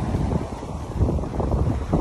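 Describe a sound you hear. Small waves wash gently onto the sand.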